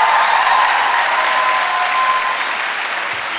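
A small group of singers holds a last note through a microphone.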